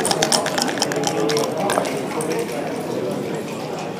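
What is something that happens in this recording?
Dice rattle and tumble onto a wooden board.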